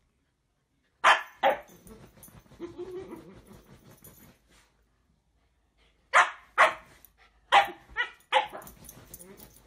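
A puppy barks sharply, close by.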